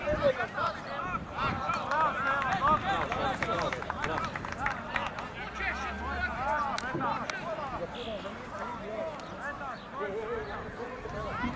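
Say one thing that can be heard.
A crowd of spectators shouts and chatters outdoors nearby.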